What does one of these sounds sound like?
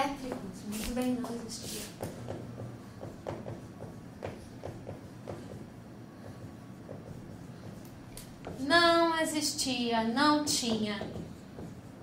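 A woman speaks in a room with some echo.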